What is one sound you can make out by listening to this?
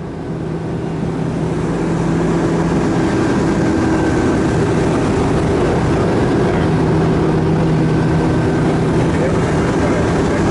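A motorboat engine drones at speed.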